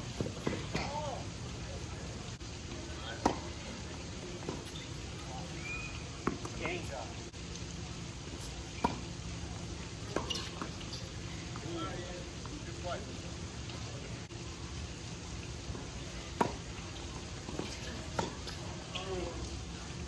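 Tennis balls are struck with rackets, with sharp pops now and then.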